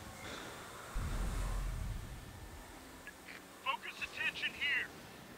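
A shell explodes with a deep, rumbling boom.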